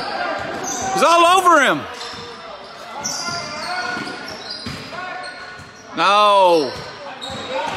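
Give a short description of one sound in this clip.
Sneakers squeak sharply on a wooden court in an echoing gym.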